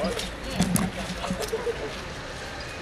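Several people shout and exclaim nearby.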